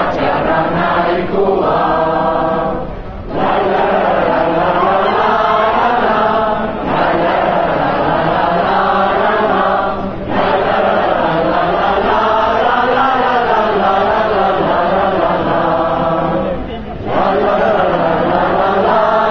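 A large crowd of men and women sings together loudly outdoors, pausing briefly between verses.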